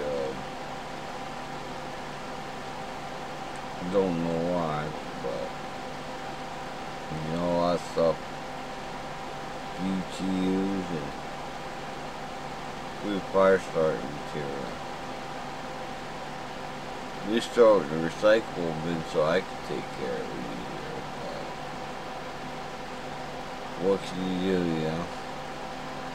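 A middle-aged man speaks slowly and calmly close to a microphone, with long pauses.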